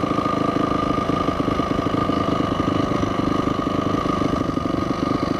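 A motorcycle engine runs loud and close, with a fast throbbing beat.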